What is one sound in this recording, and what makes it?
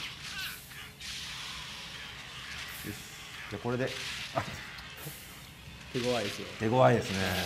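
Blades clash and strike with sharp metallic hits.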